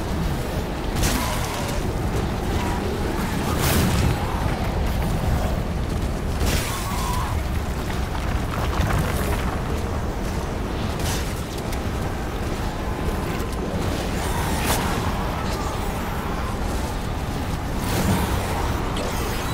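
Creatures snarl and shriek.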